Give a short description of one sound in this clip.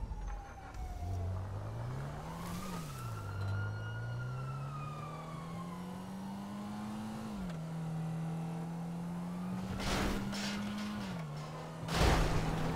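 A car engine revs up and drones as a car drives along.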